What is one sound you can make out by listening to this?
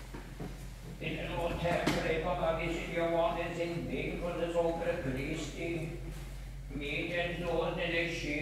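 An elderly man chants in a slow, steady voice in an echoing hall.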